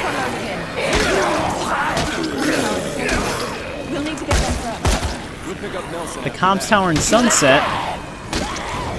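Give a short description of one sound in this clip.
Blows thud against bodies.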